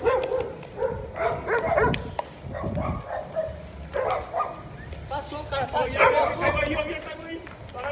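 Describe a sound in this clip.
Several men talk loudly nearby outdoors.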